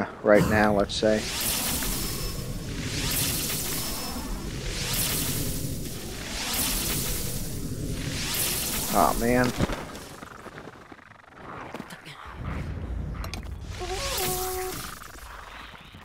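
A game's bow-aiming effect hums with a rising, airy whoosh.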